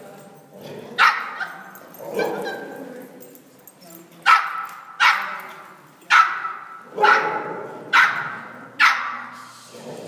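A dog barks sharply and repeatedly in a large echoing hall.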